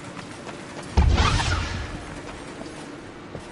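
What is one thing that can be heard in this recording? A magical energy blast bursts with a deep boom and fades.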